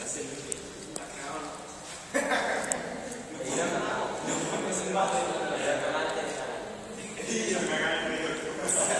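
Children and teenagers chatter and talk nearby in an echoing hall.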